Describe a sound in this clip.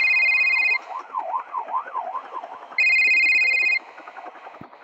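A phone ringtone rings in short bursts.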